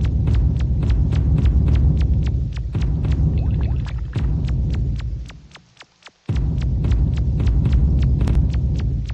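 Heavy rain pours down with a low, steady rumble.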